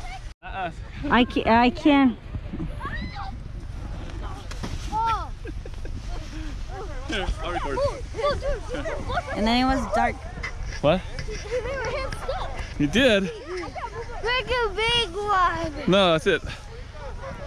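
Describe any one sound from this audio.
Young children shout and laugh excitedly nearby.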